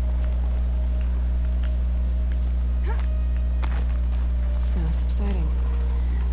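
A climber's hands knock and scrape on rock handholds.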